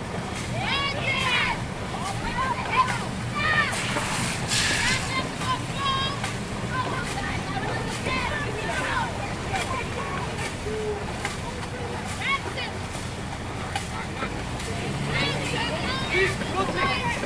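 Paddles splash rhythmically through water.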